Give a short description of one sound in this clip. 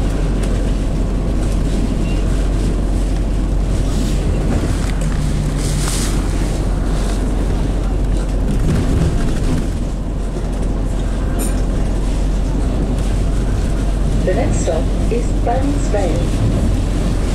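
A bus engine drones heard from inside a moving bus.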